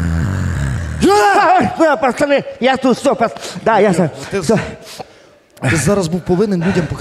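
A man shouts with animation through a microphone.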